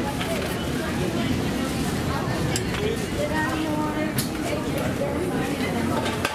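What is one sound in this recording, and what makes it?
Suitcase wheels roll across a hard floor.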